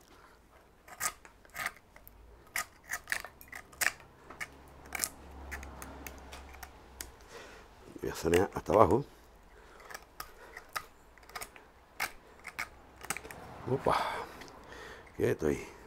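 Pruning shears snip through small branches with sharp clicks.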